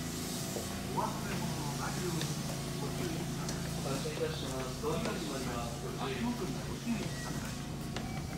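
Footsteps tap on a station platform.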